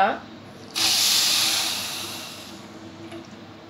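Water pours and splashes into a metal pan.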